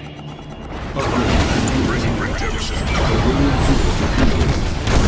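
Gunfire and blasts crackle in a battle.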